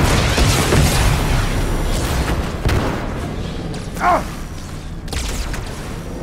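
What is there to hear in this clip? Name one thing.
A plasma weapon fires with a sizzling buzz.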